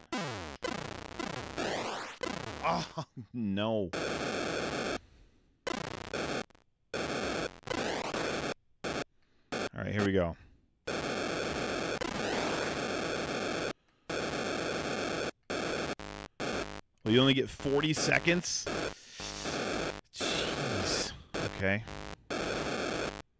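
Video game sound effects beep and buzz electronically.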